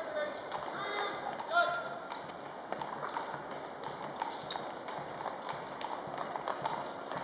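Harness fittings jingle as horses move.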